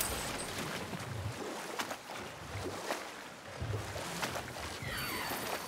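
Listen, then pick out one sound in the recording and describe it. An oar dips and strokes through the water.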